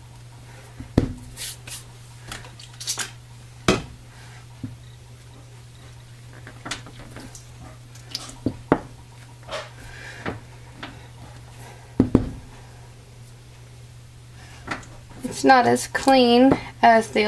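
A glass stamp knocks and taps on a soft block.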